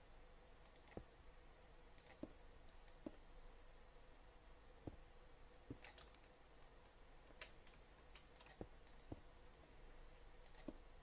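Stone blocks thud into place one after another, every second or so.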